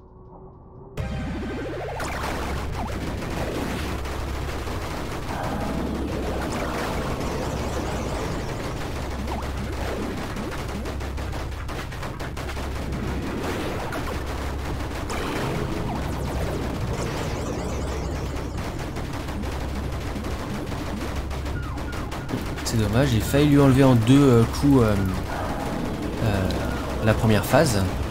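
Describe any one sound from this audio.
Video game music plays with a pulsing beat.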